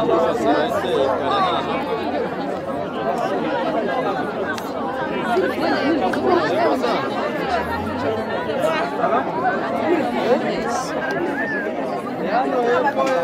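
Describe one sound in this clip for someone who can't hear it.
A large crowd of men and women cheers and shouts excitedly outdoors.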